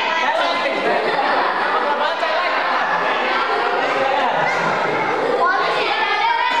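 A group of children chatter and talk over one another nearby, in an echoing room.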